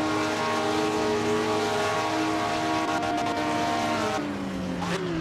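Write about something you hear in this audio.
A racing car engine drones loudly at high, steady revs.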